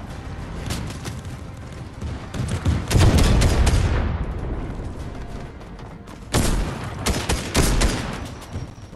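Rapid gunfire rattles in sharp bursts.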